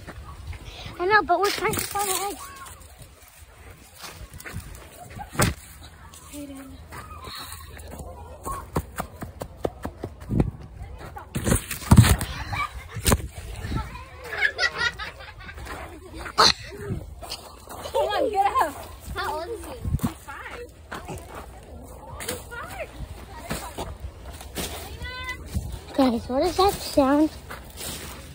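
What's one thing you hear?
A young child shouts excitedly close by.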